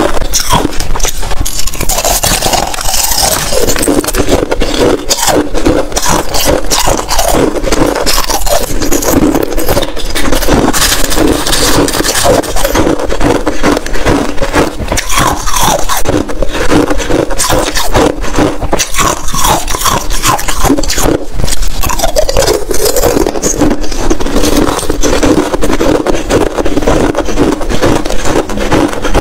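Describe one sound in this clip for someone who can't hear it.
A woman bites and crunches loudly on ice close to a microphone.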